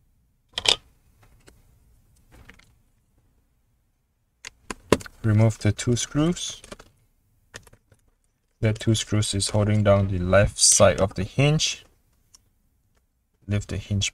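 Small plastic parts click and tap under handling.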